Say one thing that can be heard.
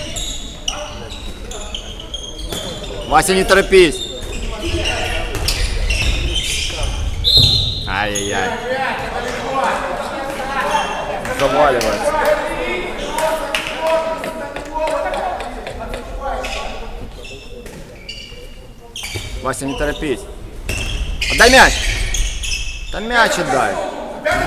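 Sneakers squeak sharply on a gym floor, echoing in a large hall.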